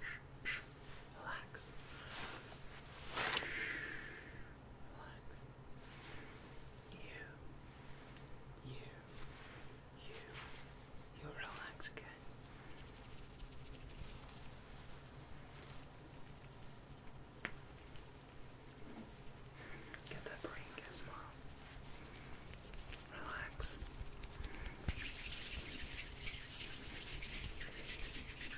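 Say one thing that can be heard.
A young man whispers softly close to the microphone.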